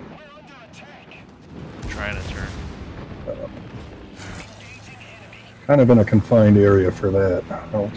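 Heavy guns boom and shells explode with a deep rumble.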